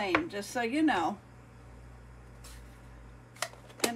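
A plastic ink pad case taps softly on paper.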